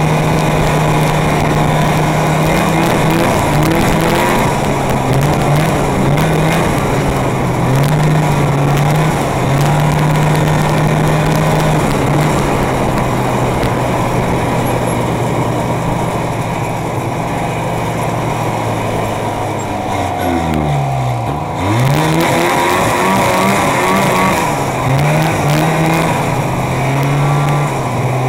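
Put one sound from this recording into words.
A snowmobile engine roars up close, its pitch rising and falling with the throttle.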